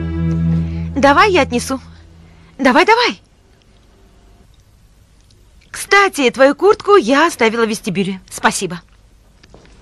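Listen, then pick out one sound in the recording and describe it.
A second young woman answers calmly nearby.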